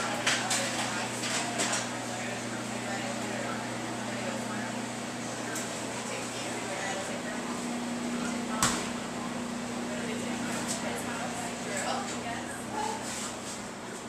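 Dishes and utensils clatter.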